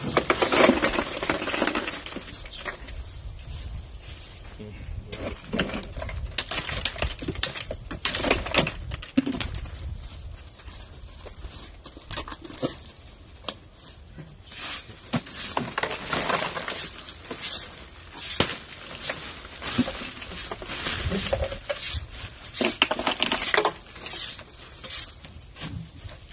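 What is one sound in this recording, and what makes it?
Ice cubes clatter and rattle as they are poured into a plastic cooler.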